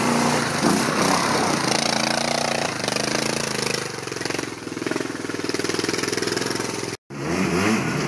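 A motorcycle sidecar outfit revs under load as it climbs a dirt track and pulls away.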